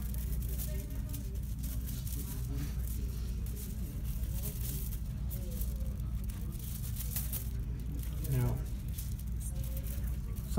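Plastic film crinkles and rustles as it is handled.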